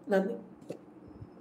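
A woman makes a short sound with her voice, close by.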